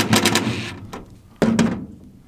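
A cordless drill whirs briefly.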